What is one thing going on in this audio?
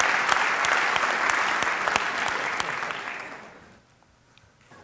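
An audience applauds loudly in a large hall, then the applause fades.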